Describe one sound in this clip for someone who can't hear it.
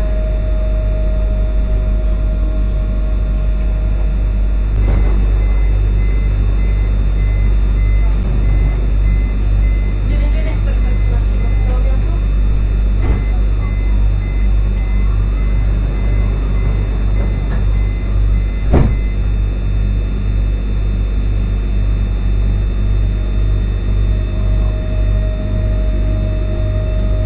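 A tram's electric motor whines as it pulls in and pulls away.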